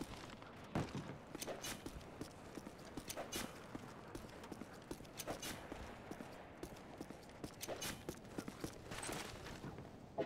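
Footsteps thud steadily on hard ground.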